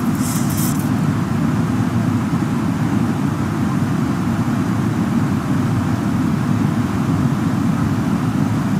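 Jet engines roar in a steady, low drone.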